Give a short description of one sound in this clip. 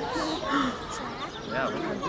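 A meerkat gives a sharp yelp close by.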